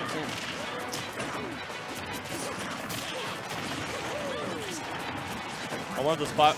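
Video game fighting sounds with hits and blasts ring out.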